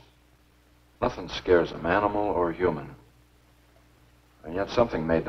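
A younger man speaks calmly, close by.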